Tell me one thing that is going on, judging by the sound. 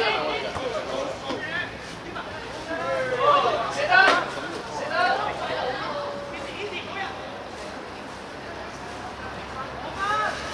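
Young men shout and call out across an open pitch.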